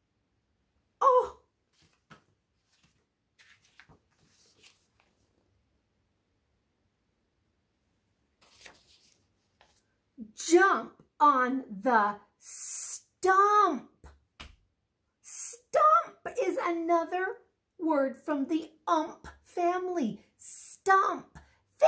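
A woman reads aloud and talks with animation, close by.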